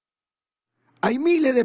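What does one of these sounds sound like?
A man speaks loudly through a microphone.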